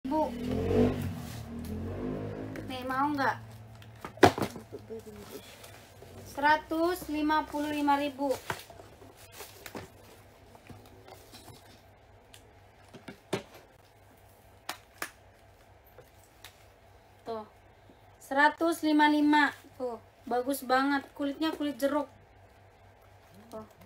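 Paper rustles and a handbag clicks as it is handled.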